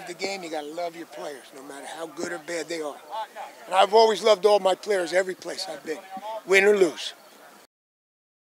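An older man speaks with animation close to a microphone.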